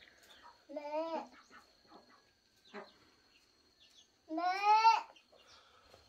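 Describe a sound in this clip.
A young child calls out loudly in a high, pleading voice.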